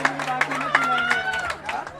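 A group of young women and men sing together on stage.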